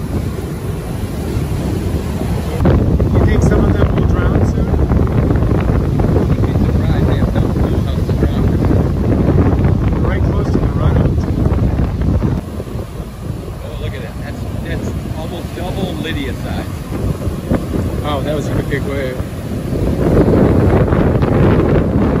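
Waves crash and roll onto a beach, close by.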